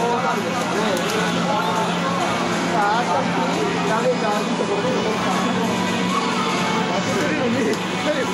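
Punches and kicks from a fighting video game thud through a loudspeaker.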